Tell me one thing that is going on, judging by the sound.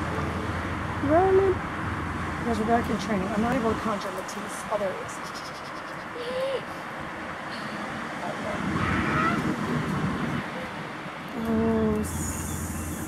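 A woman talks calmly and cheerfully to a dog nearby.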